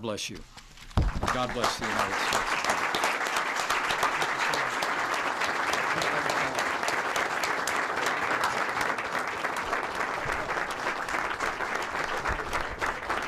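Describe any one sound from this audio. An audience applauds steadily.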